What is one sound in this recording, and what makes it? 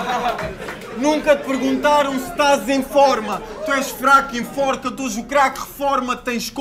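A young man raps aggressively into a microphone, heard through loudspeakers in a large echoing room.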